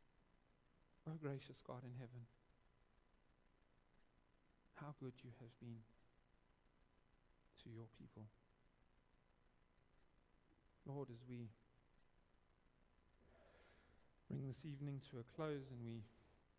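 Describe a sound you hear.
A man speaks calmly in short phrases with long pauses.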